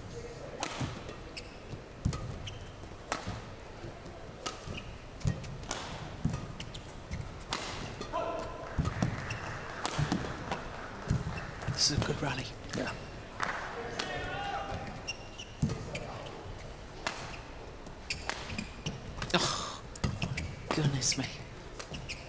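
Badminton rackets strike a shuttlecock back and forth.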